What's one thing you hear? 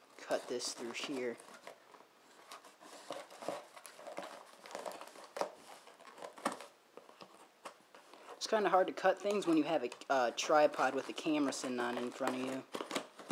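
Scissors snip and cut through packing tape.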